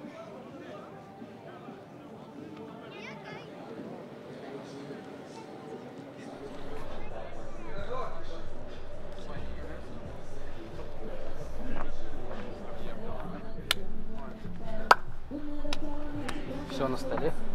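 A crowd of adults and children chatter outdoors.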